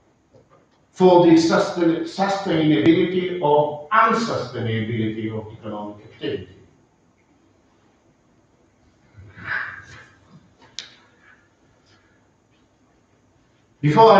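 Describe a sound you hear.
An older man lectures calmly.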